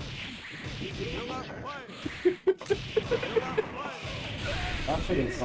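Video game punches and impacts land in quick bursts.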